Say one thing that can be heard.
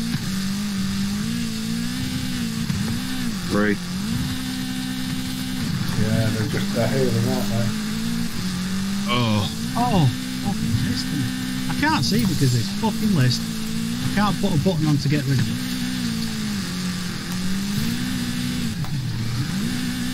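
An engine revs hard and changes pitch as a buggy races.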